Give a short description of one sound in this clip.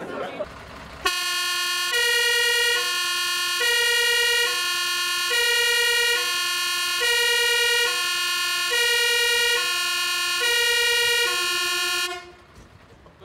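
A fire engine's two-tone siren wails close by.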